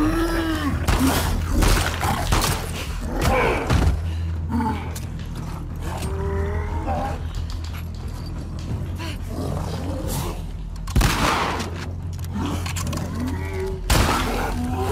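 Gunshots bang loudly and echo.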